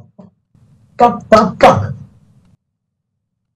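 An older man curses loudly over an online call.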